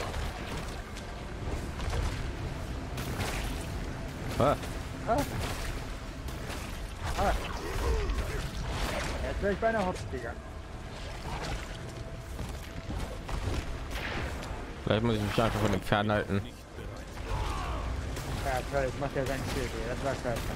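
Blows and spell blasts thud and crackle in a fast fight.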